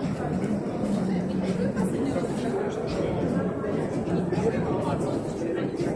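Packaging machines hum and clatter steadily.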